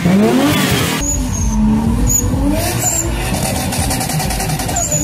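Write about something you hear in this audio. A car engine roars as it races closer.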